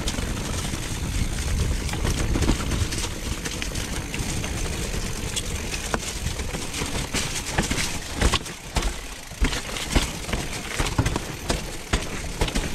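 Bicycle tyres roll and crunch over dirt and gravel.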